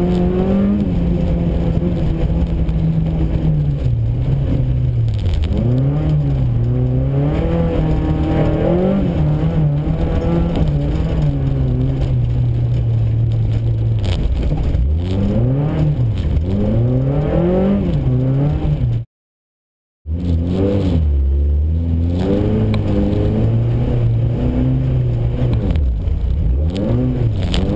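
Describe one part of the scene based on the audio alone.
Tyres crunch and spray over packed snow.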